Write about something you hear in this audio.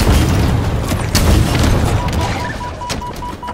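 Energy weapon fire crackles and blasts rapidly.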